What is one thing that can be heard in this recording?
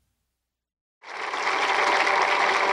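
A trumpet plays a bright melody.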